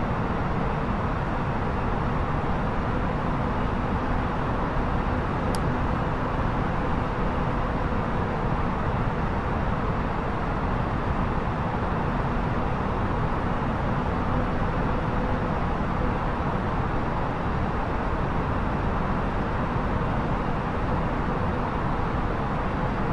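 Jet engines roar steadily in flight.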